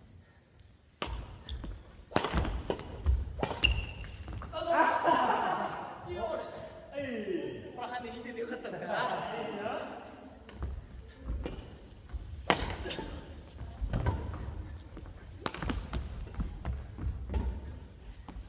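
A badminton racket smacks a shuttlecock in a large echoing hall.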